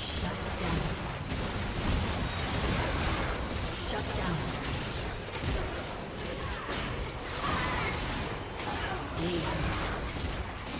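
Game spell effects crackle and burst in a fast fight.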